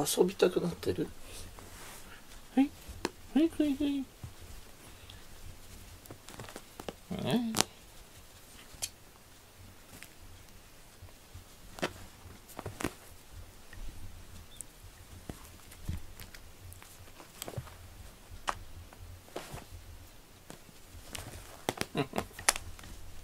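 A cat's paws scratch and rustle on a fabric cover.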